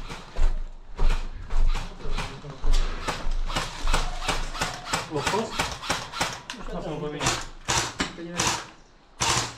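Airsoft guns fire in rapid bursts of sharp clicks.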